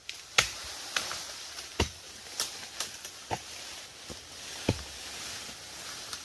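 Leafy branches rustle and crash down.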